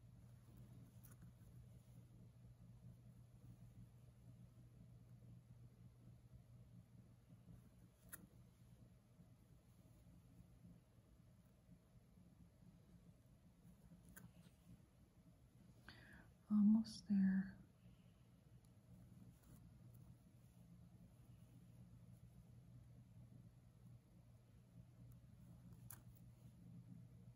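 A needle and thread pull softly through cloth.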